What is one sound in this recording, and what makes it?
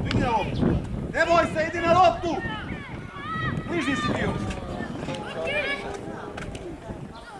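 Young male players shout to each other across an open field.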